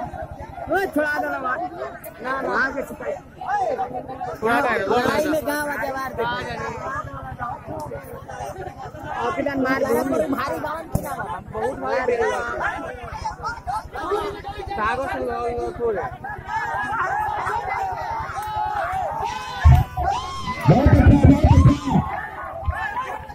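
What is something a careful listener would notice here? A large crowd of men chatters and shouts close by, outdoors.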